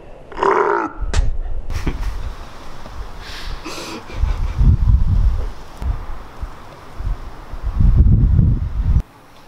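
Wind rumbles against the microphone outdoors.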